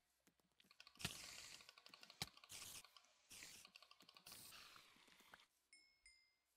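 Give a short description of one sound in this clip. A sword hits a spider several times.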